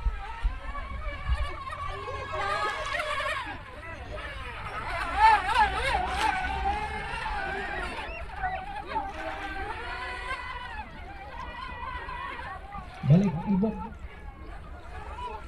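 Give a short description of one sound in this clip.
Light wind blows outdoors.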